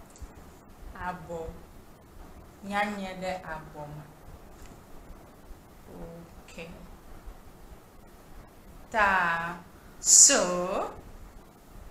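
A young woman speaks close to a microphone, expressively and with pauses.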